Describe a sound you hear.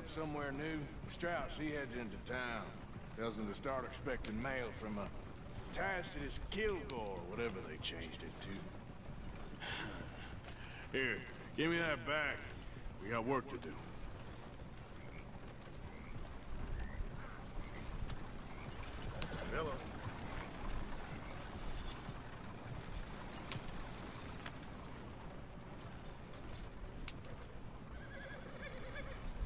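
Horse hooves clop steadily on the dirt.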